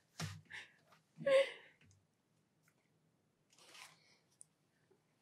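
A young woman whispers close to a microphone.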